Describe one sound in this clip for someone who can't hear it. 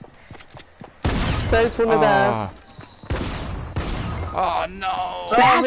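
Gunshots ring out in loud bursts.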